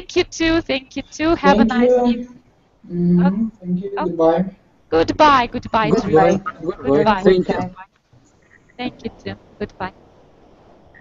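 A young woman speaks with animation through a headset microphone on an online call.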